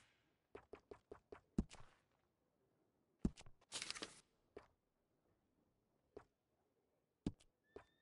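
Paper catalog pages turn.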